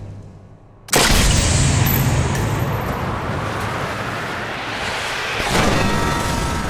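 A bullet whooshes through the air.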